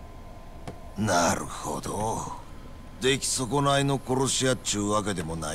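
A man speaks in a taunting tone.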